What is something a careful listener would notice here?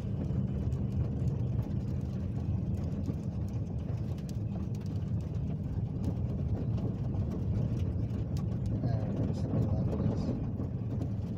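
Tyres rumble and crunch on a dirt road.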